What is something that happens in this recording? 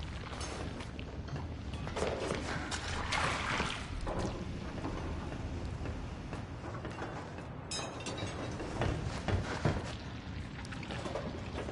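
Footsteps thud slowly on a creaking wooden floor.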